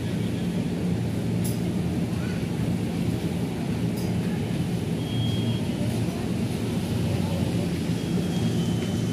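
A train's engine hums steadily at low pitch.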